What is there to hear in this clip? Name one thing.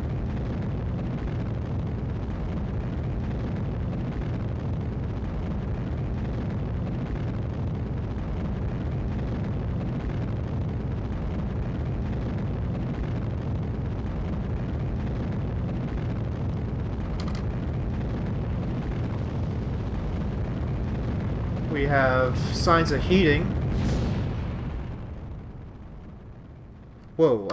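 A rocket engine roars with a steady low rumble, then fades away.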